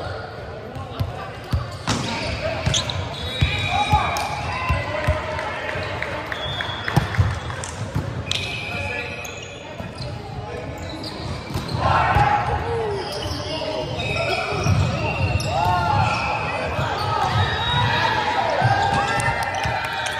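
A volleyball is hit with sharp slaps that echo in a large hall.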